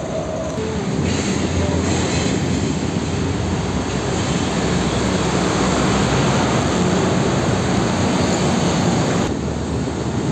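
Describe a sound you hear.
A diesel box truck passes close by.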